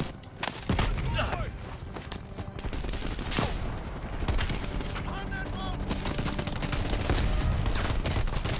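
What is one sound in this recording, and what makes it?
Pistol shots crack sharply now and then.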